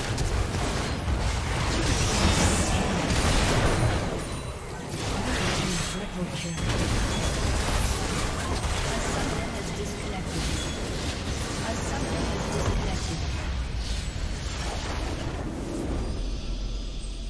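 Spell blasts, clashes and explosions from a video game battle crackle densely.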